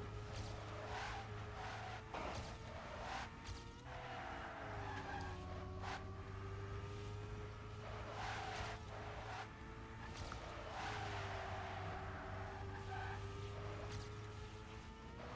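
Tyres screech and skid in bursts.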